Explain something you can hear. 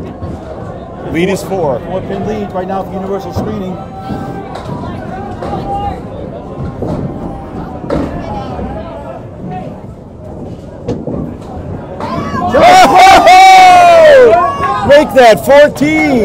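Several men talk nearby in a busy, echoing hall.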